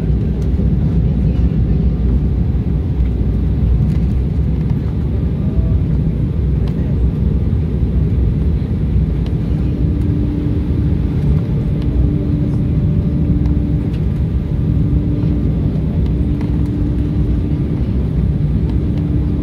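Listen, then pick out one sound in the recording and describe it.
Jet engines roar with a steady low rumble inside an airliner cabin.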